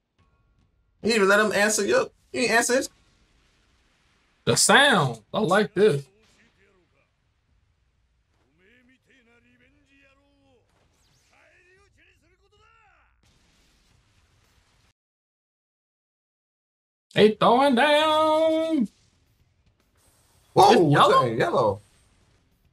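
A young man speaks loudly and with animation, close by, in short bursts.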